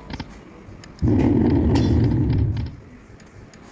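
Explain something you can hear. A slot machine plays a loud burst of electronic music.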